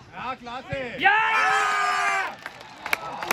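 Spectators cheer loudly nearby.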